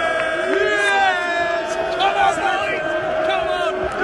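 A man shouts with excitement right beside the microphone.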